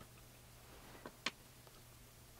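Small metal parts click softly.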